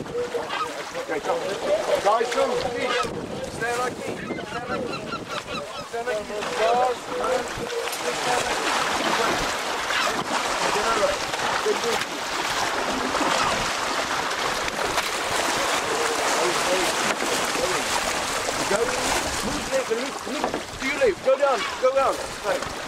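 Choppy sea water sloshes and laps steadily.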